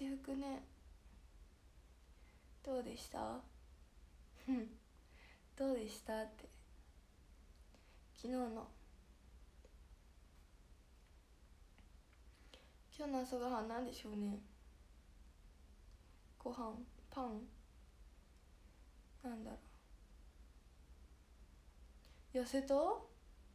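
A young woman talks softly and close by, in short bursts with pauses.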